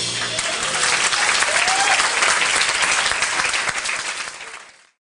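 A big jazz band plays loudly in a lively room.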